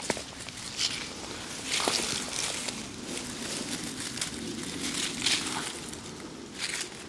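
Dry leaves rustle and crackle as a hand brushes through them.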